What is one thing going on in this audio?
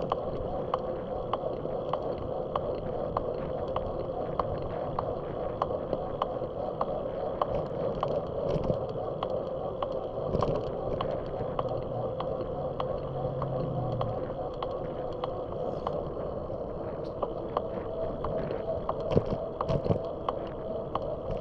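Wind rushes steadily past while riding outdoors.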